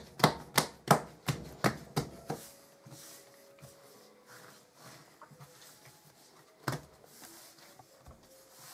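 Hands softly rub and roll dough.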